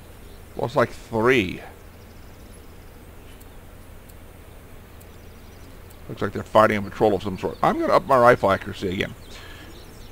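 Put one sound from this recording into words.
An older man talks casually into a close microphone.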